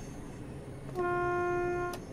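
A warning tone beeps in the driver's cab.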